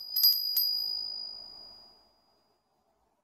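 A small metal bell rings with a clear tone and slowly fades.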